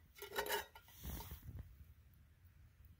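Liquid bubbles and simmers in a pot.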